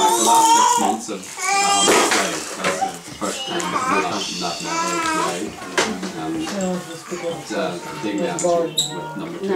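Toddlers babble and squeal nearby.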